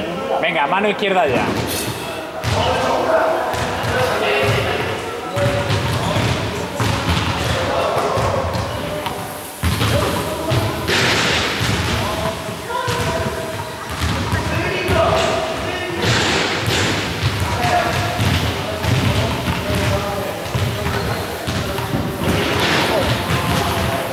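A man talks, echoing in a large hall.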